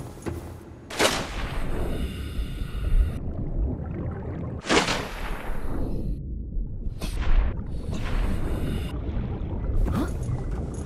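A low muffled rumble of moving water surrounds a diver underwater.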